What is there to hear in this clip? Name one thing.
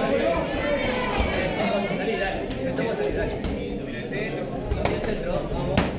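Punches and kicks thud against bodies.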